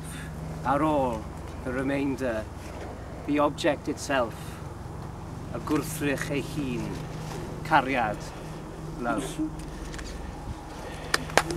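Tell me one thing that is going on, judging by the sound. A man speaks loudly outdoors to a group, with pauses.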